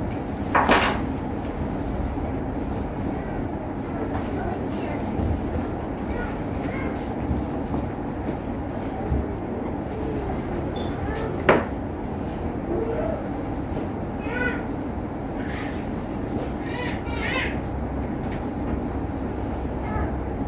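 An elderly man murmurs prayers quietly.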